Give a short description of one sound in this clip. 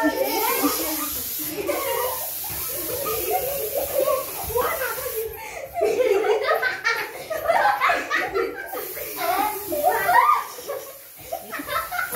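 Young girls shout and laugh excitedly close by.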